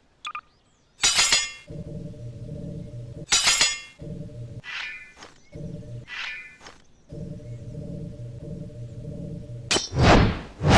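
A sword swishes through the air in quick sweeps.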